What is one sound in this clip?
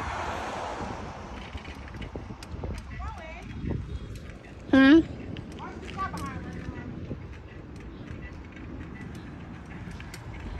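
A bicycle rolls quietly along an asphalt road.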